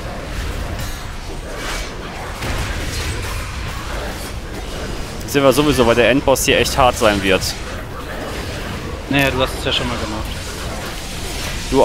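Game combat effects clash and whoosh.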